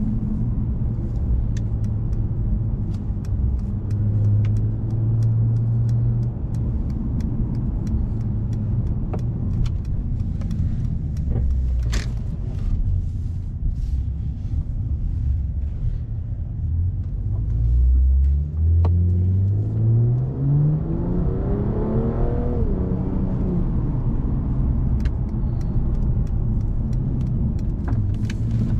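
Tyres hum on asphalt.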